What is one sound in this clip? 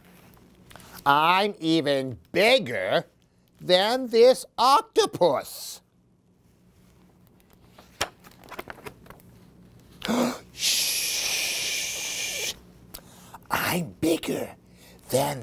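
A man reads aloud expressively, close by.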